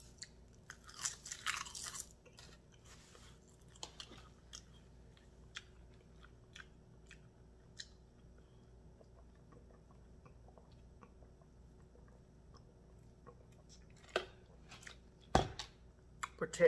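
A woman slurps and chews food close to the microphone.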